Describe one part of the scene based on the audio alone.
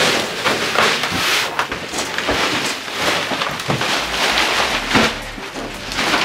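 Debris clatters and scrapes on the floor.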